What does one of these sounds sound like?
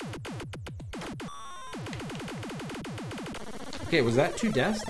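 Electronic arcade game tones buzz and sweep.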